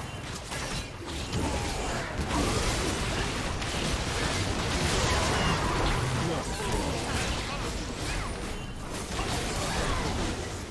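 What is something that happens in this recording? Magic blasts and clashing weapons crackle and boom in a busy fight.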